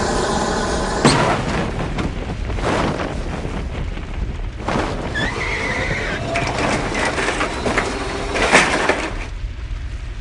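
Wreckage crashes and rumbles as it falls.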